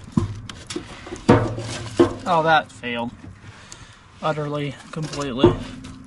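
Split wood clatters as it is placed on a crackling fire.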